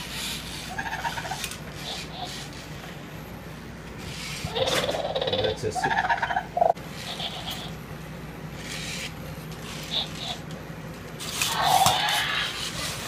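A toy robot dinosaur plays electronic roars and growls.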